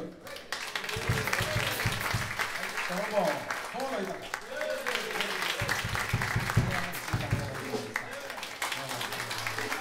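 A big band plays jazz.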